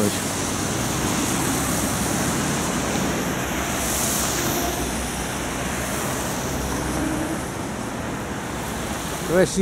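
A car drives past on a wet road.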